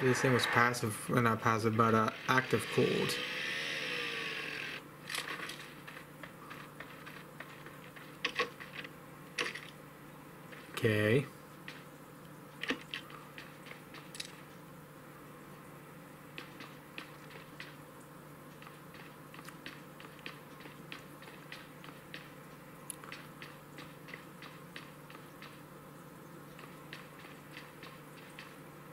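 A mobile game's sound effects play through a small phone speaker.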